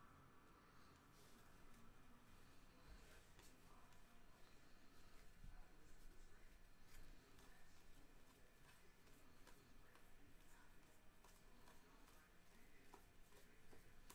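Trading cards riffle and slap as a stack is shuffled by hand.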